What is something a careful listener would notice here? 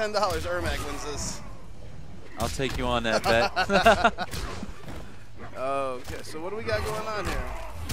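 A fighter's magic blast whooshes and crackles.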